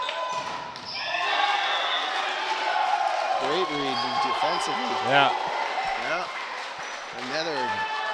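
A crowd cheers and claps in an echoing gym.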